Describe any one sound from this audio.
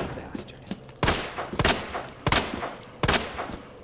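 A handgun fires loud shots that echo in a hallway.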